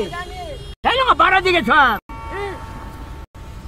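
A middle-aged man sings loudly, close by.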